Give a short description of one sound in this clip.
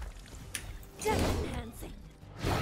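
A blade swings with a fiery whoosh.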